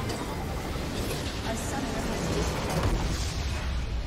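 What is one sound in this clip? A structure explodes with a heavy boom.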